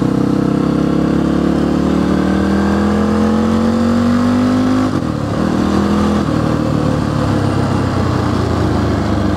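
A motorcycle engine hums steadily, its pitch rising as it speeds up, then dropping with a gear change.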